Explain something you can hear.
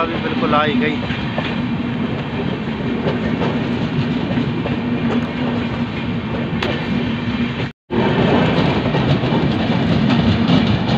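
A passenger train rumbles and clatters past on the tracks.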